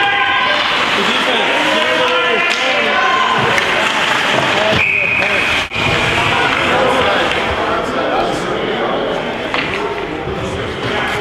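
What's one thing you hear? Spectators chatter and call out in a large echoing rink.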